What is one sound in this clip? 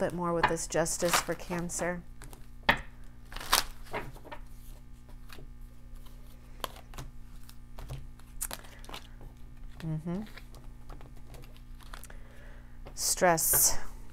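Playing cards rustle and tap as they are laid down on a table.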